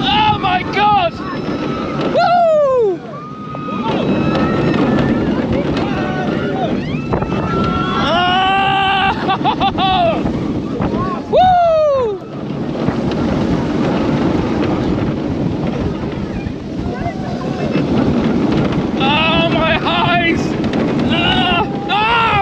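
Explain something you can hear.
Riders scream and shout excitedly nearby.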